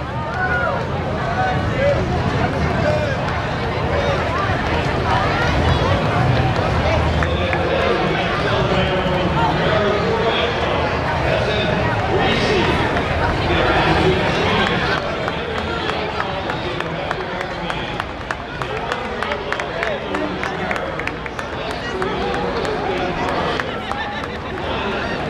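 A crowd of onlookers chatters along the street outdoors.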